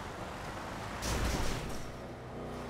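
A car crashes through a metal fence with a loud bang.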